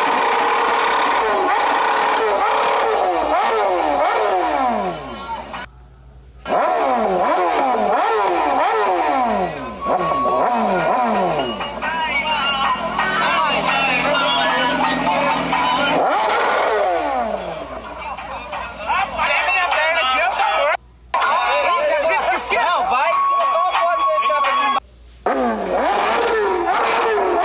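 A motorcycle engine revs hard again and again, its roar dropping away after each burst.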